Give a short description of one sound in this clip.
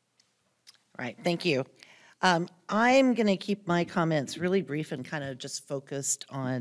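A woman speaks steadily into a microphone, heard through a loudspeaker.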